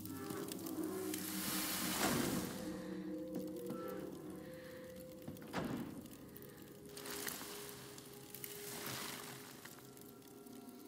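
Magical sparkles shimmer and hiss.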